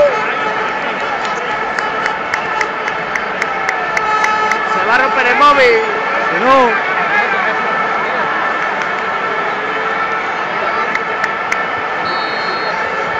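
A large stadium crowd roars and chants steadily all around.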